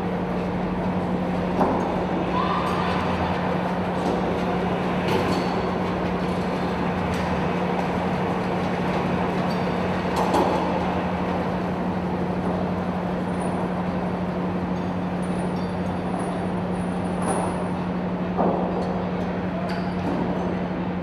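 Diesel engines of tracked amphibious assault vehicles rumble and echo in a large steel enclosure.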